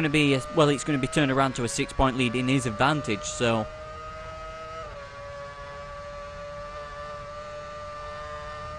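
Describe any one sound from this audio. A racing car engine whines steadily at high speed.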